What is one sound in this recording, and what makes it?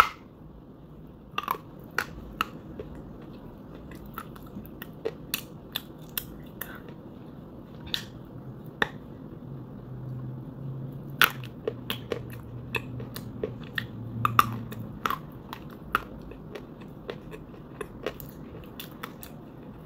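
A person chews crunchy food loudly, close to a microphone.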